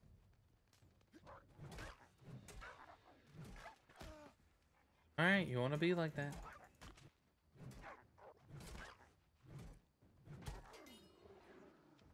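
A heavy weapon thuds against a wolf.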